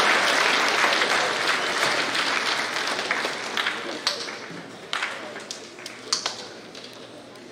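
An audience applauds in a large hall, fading away.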